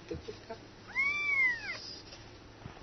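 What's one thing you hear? A kitten mews loudly.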